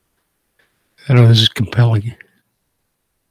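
A middle-aged man speaks briefly and calmly into a microphone.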